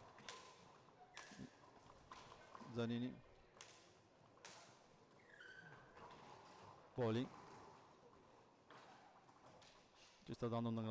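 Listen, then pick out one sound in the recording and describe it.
Hockey sticks sharply clack against a ball, echoing in a large hall.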